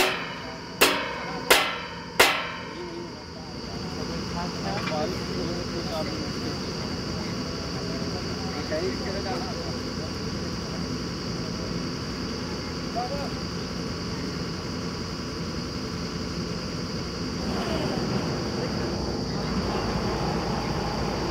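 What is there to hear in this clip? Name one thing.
A drilling rig engine runs with a steady rumble.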